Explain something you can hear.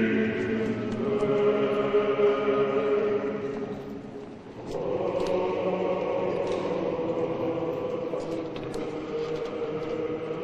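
Footsteps echo across a large hall.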